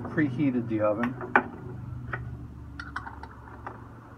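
Metal clinks and clicks as a latch is worked by hand.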